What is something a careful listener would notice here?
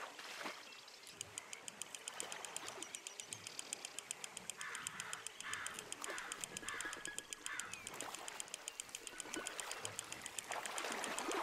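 A fishing reel clicks rapidly as the line is wound in.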